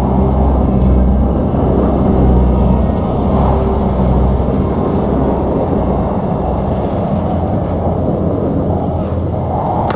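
A battle rumbles steadily with the dense din of clashing armies.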